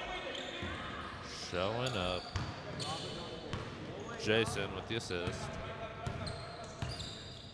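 Sneakers squeak on a hard court in a large echoing gym.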